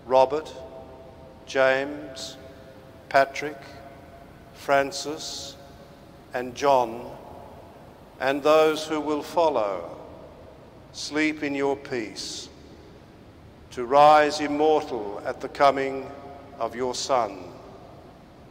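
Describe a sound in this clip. A man chants slowly in phrases, echoing in a large hall.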